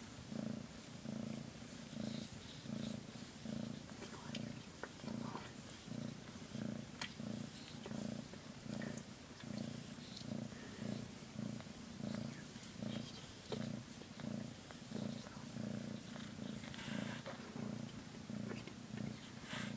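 A cat purrs loudly and steadily up close.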